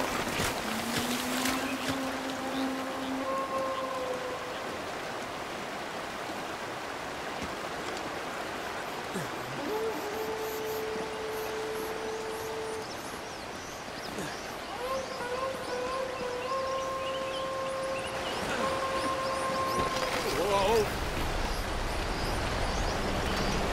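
A waterfall pours and splashes into a pool.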